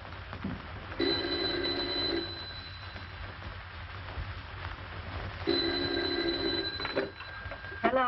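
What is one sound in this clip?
A telephone rings loudly in short bursts.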